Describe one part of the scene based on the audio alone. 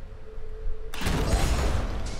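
Sparks crackle and hiss from a burst of electricity.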